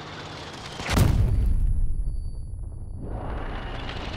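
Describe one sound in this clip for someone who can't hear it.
Bullets strike metal with sharp impacts.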